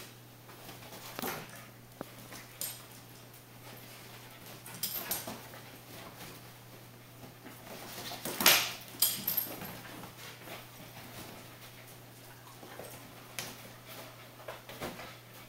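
Dogs' paws scuffle and rustle on a soft cushion.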